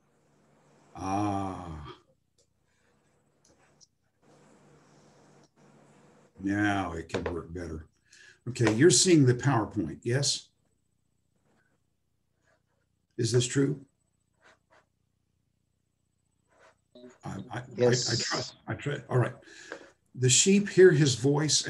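An elderly man speaks calmly over an online call, with pauses.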